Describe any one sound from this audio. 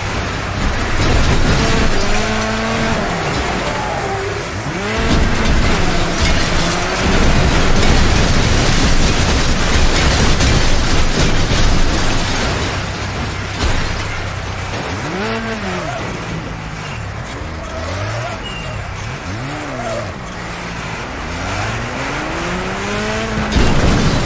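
A buggy engine revs and whines up and down in pitch.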